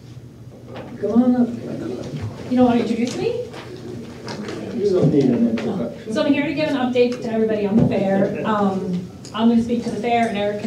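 A woman speaks with animation into a microphone in a room.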